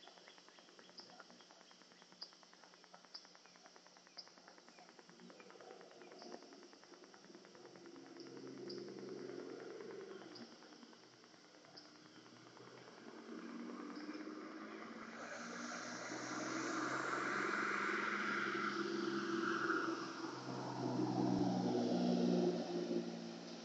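Water sprays from a hose nozzle onto grass.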